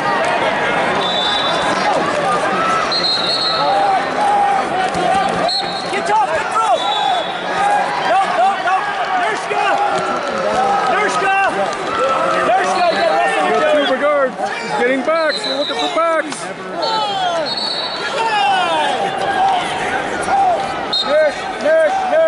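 Shoes squeak sharply on a mat.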